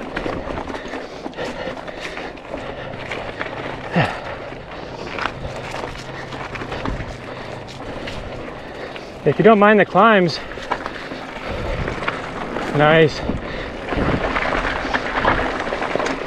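A bicycle rattles and clatters over bumps.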